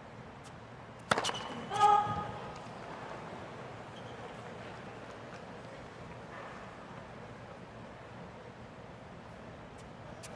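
A tennis ball is bounced on a hard court before a serve.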